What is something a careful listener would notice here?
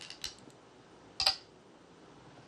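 A stone clicks sharply onto a wooden board.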